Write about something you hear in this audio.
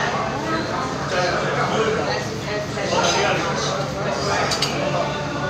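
A young man speaks calmly close by.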